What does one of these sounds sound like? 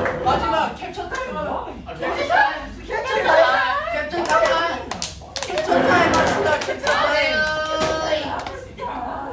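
Several young men talk and shout excitedly close by.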